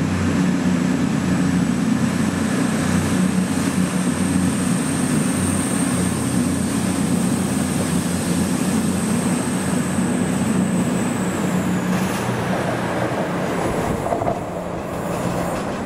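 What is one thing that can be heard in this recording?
A diesel train engine rumbles loudly as a train passes close by.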